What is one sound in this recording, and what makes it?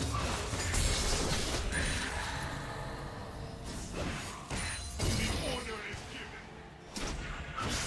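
Magic blasts and clashing hits burst in a fast fight.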